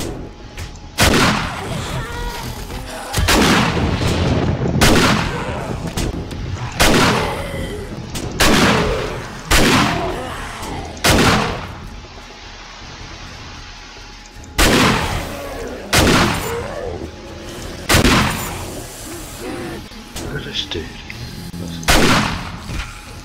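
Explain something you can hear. A gun fires loud single shots that echo, every second or two.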